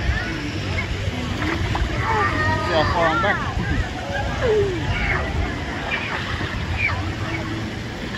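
Water splashes and laps in a pool.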